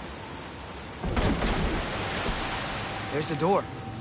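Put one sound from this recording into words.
Water pours down in a loud rushing splash.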